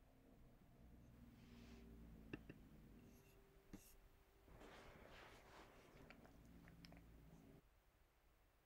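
A plastic scraper rubs and scrapes softly across a plastic lid.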